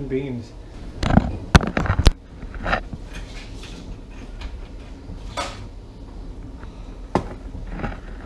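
Something knocks and clatters on a counter.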